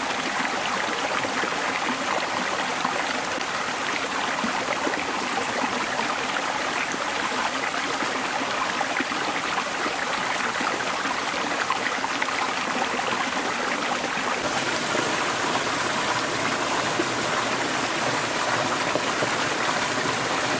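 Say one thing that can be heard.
A stream trickles and splashes over rocks nearby.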